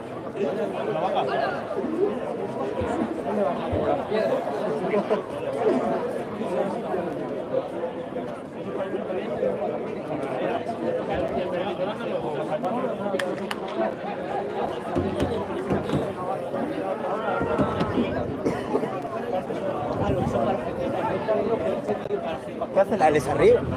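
Several men and women chat close by outdoors.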